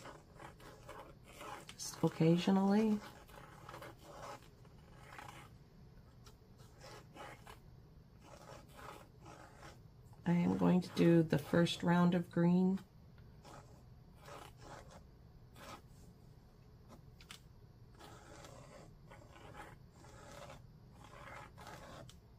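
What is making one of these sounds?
A paintbrush strokes softly across paper.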